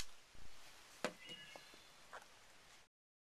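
A knife is set down on a hard surface with a light knock.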